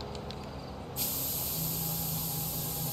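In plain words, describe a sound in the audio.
A spray can hisses steadily.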